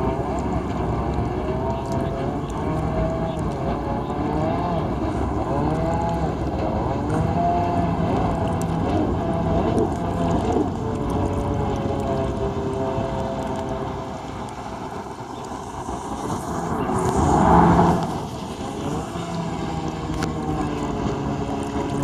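Water sprays and splashes behind a jet ski.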